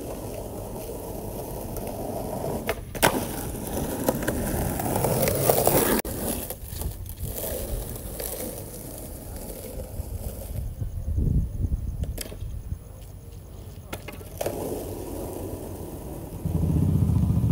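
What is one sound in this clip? Skateboard wheels roll over rough pavement.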